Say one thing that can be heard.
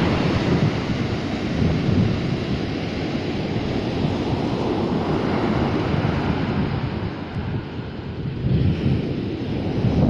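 Ocean waves break and wash up onto the shore with a steady, surging roar.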